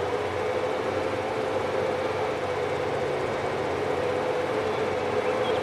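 A van engine hums steadily as the van drives along.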